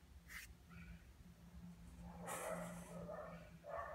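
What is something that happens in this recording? A hand strokes a dog's fur.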